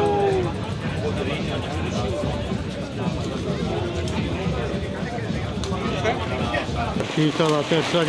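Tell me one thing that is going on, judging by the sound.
A crowd of men chatters nearby.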